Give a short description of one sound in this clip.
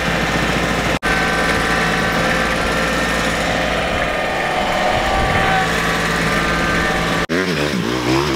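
A diesel tractor engine runs at a steady pace.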